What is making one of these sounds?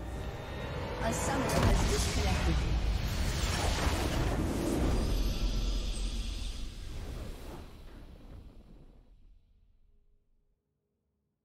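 A triumphant orchestral fanfare swells and then fades away.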